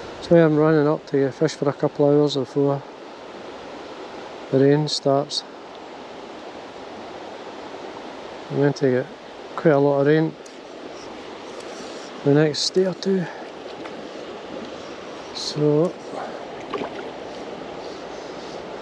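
A river rushes steadily over stones nearby.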